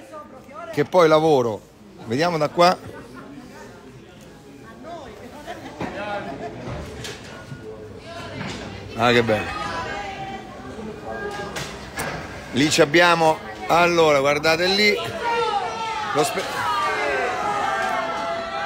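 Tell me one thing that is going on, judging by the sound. Voices of people chatter in the street below.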